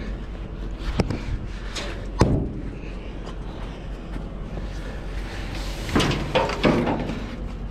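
Hands and gear knock and scrape against a metal freight car.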